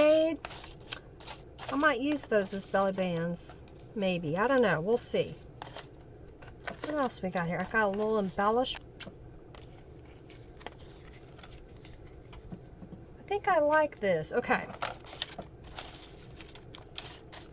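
Paper rustles and shuffles as pages are handled.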